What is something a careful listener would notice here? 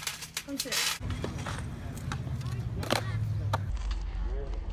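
Scooter wheels roll on concrete.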